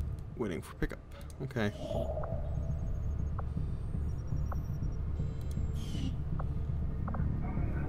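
A menu button clicks.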